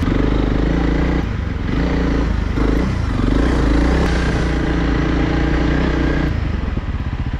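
A motorcycle engine rumbles loudly under load.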